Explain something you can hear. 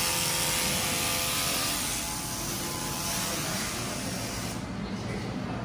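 A machine hums and hisses steadily.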